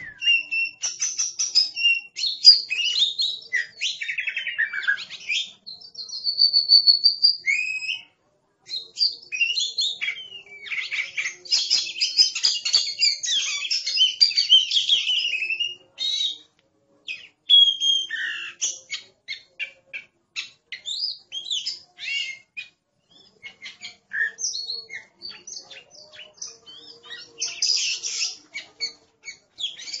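A songbird sings a rich, varied song of whistles and chirps close by.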